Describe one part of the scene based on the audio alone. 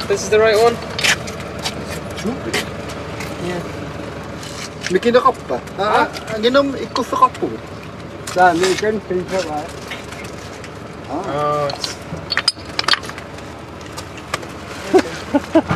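Young men talk calmly close by.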